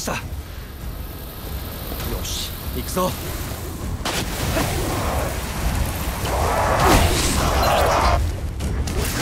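Electric energy crackles and buzzes in short bursts.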